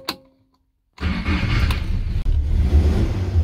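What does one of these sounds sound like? A car engine starts and idles with a steady rumble.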